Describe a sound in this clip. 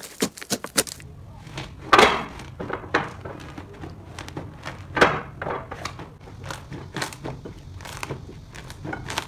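Soft, fluffy slime squishes and crunches softly under pressing hands.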